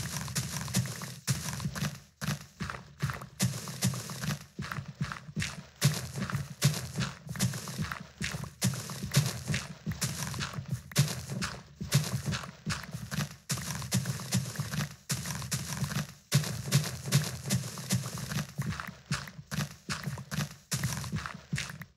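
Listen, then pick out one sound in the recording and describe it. A pickaxe digs through dirt and stone in quick, repeated crunching scrapes.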